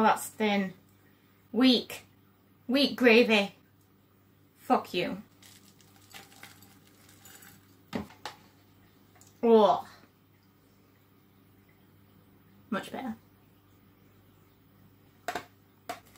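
Liquid pours into a jug.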